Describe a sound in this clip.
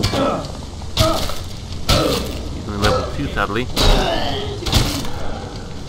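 Heavy blows land with dull thuds.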